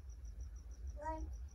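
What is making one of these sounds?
A toddler babbles briefly.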